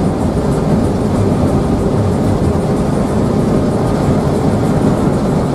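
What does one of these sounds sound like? Road noise hums inside a moving bus.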